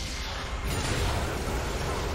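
A loud game explosion rumbles and crackles.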